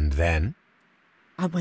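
A man asks a short question calmly, close by.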